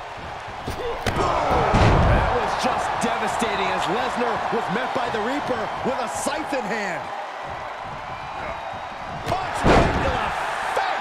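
A heavy body slams down onto a wrestling ring mat with a loud thud.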